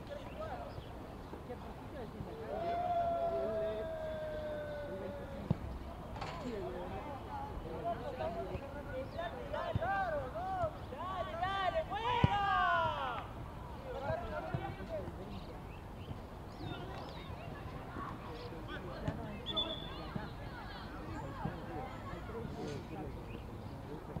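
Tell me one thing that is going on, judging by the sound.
Young men shout to each other across an outdoor pitch.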